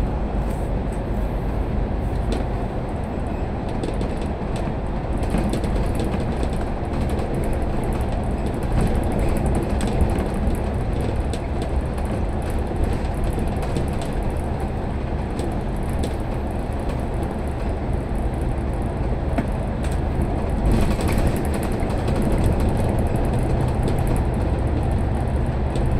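A vehicle's engine rumbles steadily while driving through an echoing tunnel.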